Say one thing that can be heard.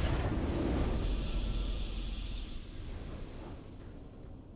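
A triumphant game fanfare rings out and fades away.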